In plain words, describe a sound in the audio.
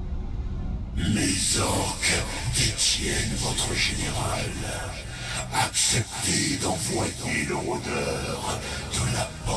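A man speaks in a deep, rasping voice, close by.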